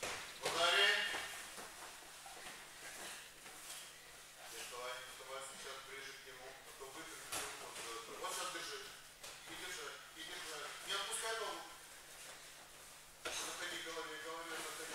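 Bare feet shuffle and thump on a padded mat.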